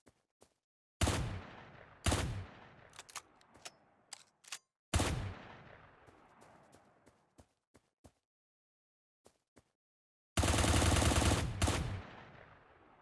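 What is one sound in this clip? Gunshots ring out with a short echo, ending in a rapid burst of automatic fire.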